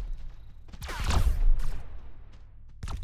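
A large blast booms.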